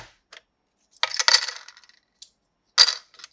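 Plastic coins clatter in a toy drawer.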